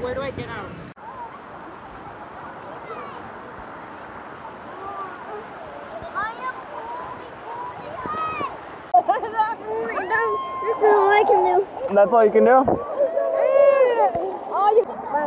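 A young woman talks and laughs cheerfully close by.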